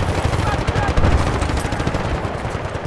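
A loud explosion booms nearby.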